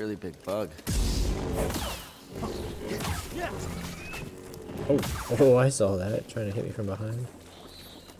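Blows strike with sharp hits.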